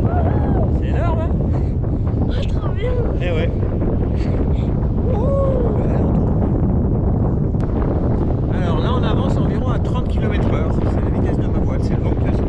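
A man talks cheerfully close by.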